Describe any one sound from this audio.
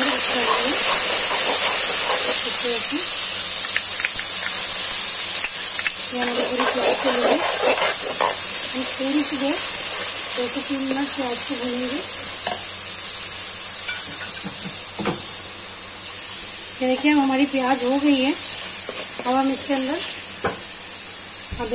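Oil sizzles steadily in a pan.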